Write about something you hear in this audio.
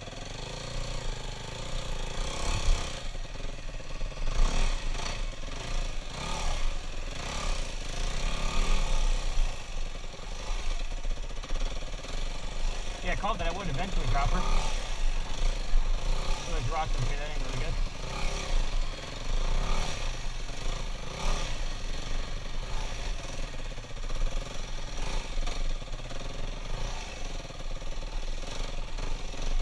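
A dirt bike engine hums and revs up and down.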